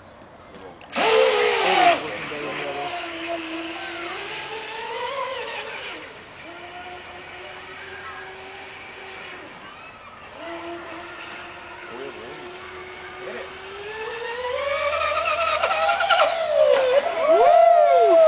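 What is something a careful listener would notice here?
A small model boat motor whines at high pitch, rising and falling as the boat speeds across water.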